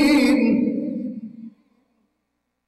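A man chants loudly into a microphone in an echoing hall.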